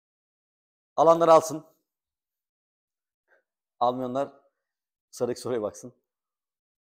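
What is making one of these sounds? A man speaks in short phrases, pausing between them.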